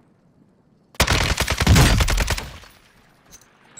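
Window glass shatters.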